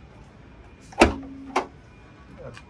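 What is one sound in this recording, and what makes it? A car boot lid unlatches with a click and thuds open.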